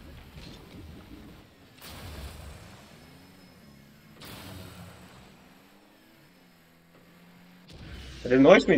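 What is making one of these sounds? A game car's engine hums and revs up and down.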